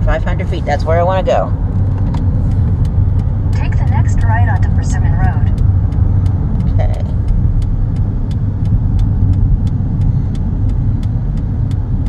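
A car engine hums and tyres roll steadily on the road.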